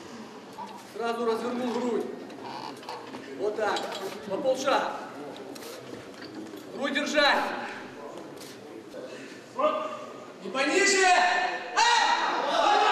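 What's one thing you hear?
Several men shout encouragement loudly in a large echoing hall.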